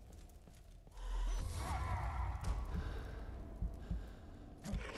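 A fiery explosion roars and crackles.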